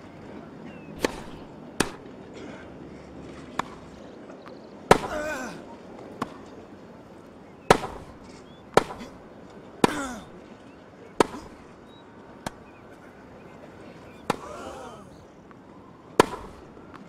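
A tennis ball is struck back and forth with sharp pops of the racket.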